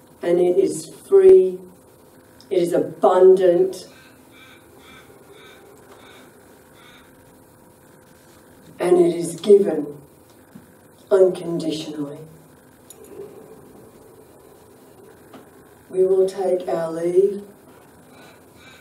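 A woman sings slowly into a microphone, with long pauses between phrases.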